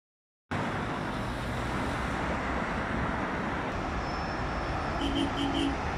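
Heavy traffic roars steadily along a busy highway.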